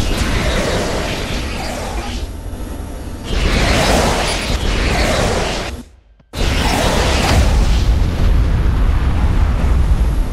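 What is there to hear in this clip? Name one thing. Laser beams zap and crackle in a battle.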